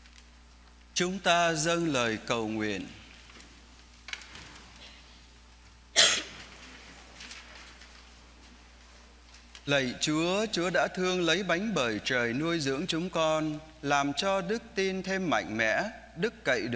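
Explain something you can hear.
A man chants through a microphone in an echoing hall.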